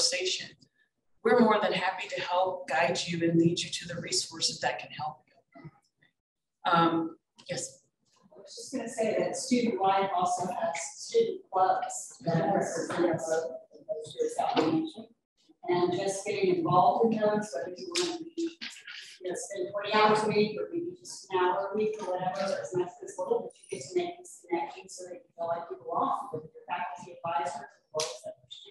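A woman lectures steadily through a microphone.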